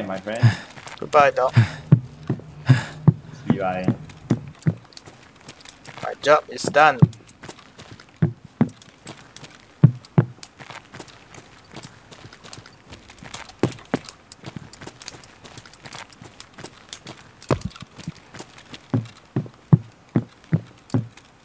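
Footsteps clang on metal stairs.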